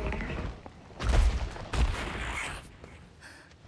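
A huge beast roars loudly.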